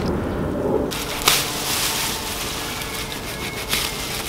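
Tall grass rustles as hands push through it.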